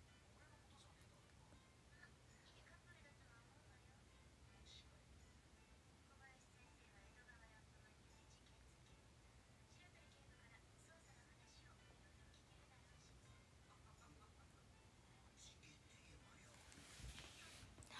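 A young woman speaks softly and quietly, close by.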